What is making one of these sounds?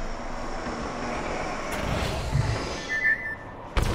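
A heavy metal door slides open with a mechanical hiss.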